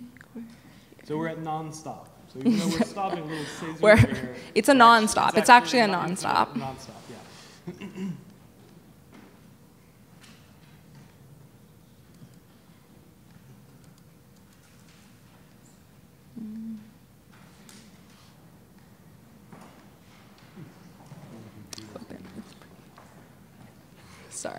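A young woman speaks with animation into a microphone, then talks quietly.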